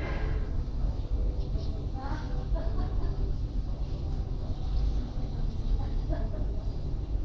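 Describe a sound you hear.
A crowd murmurs faintly in a large echoing hall.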